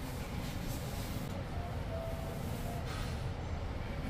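Bedding rustles as a person shifts on a mattress.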